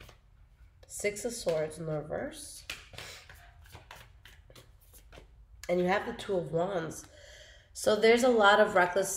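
A young woman talks calmly and close by.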